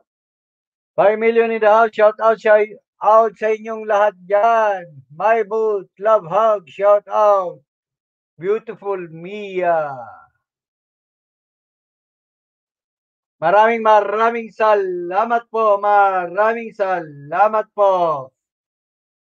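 A man speaks with animation close to the microphone, in bursts with pauses.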